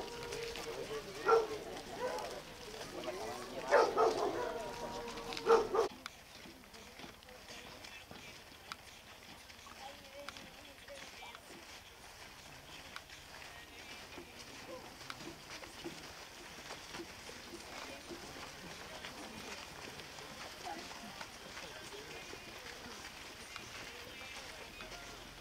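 A crowd's footsteps shuffle on a dirt road.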